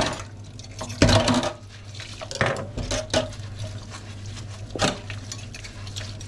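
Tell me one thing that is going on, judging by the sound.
Utensils are scrubbed with a sponge.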